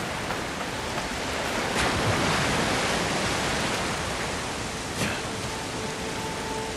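Waves crash against rocks nearby.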